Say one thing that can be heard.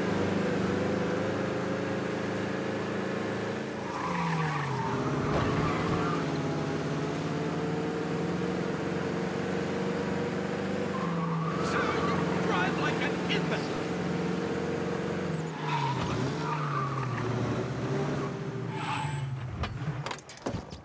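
A car engine hums steadily and changes pitch as the car speeds up and slows down.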